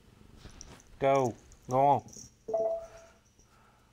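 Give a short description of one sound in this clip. A man speaks briefly and loudly into a close microphone.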